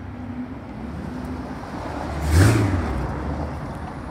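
A sports car engine roars as the car drives past close by.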